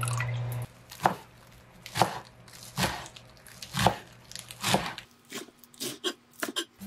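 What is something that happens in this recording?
A knife chops leafy greens on a wooden board.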